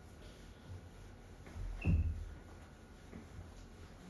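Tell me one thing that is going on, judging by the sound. An eraser wipes across a whiteboard.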